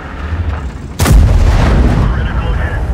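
A tank cannon fires with a loud, echoing boom.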